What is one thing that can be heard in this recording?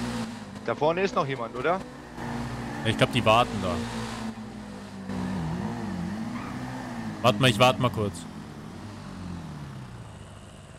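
A motorbike engine revs, its pitch rising and falling.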